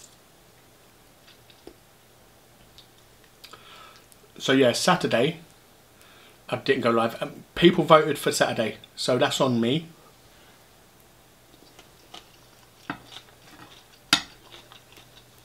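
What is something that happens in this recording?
A metal spoon scrapes and clinks against a bowl.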